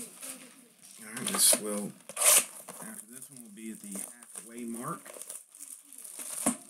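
Plastic wrap crinkles and tears under someone's hands.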